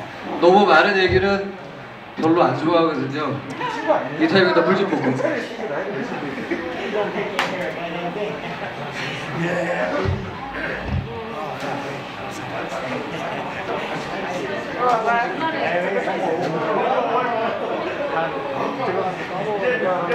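A rock band plays loudly through amplifiers in an echoing hall.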